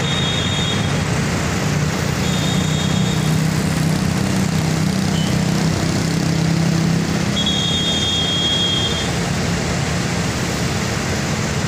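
A vehicle engine rumbles steadily close by.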